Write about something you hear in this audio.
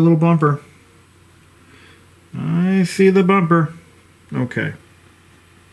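A man speaks calmly close by, in short bursts.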